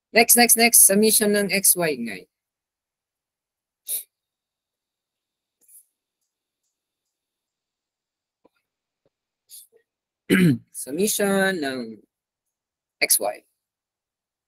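A young man speaks calmly into a microphone, in short bursts with long pauses.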